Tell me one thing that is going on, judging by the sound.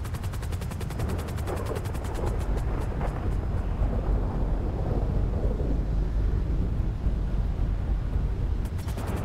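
Helicopter rotors thump rapidly and steadily overhead.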